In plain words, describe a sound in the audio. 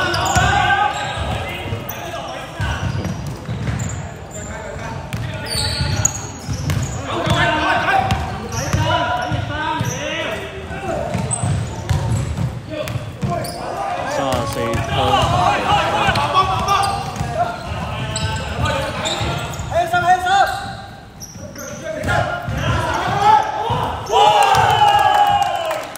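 Young men shout and call out to each other across an echoing indoor court.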